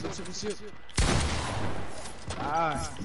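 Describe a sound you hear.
Rapid gunfire bangs against a wooden wall.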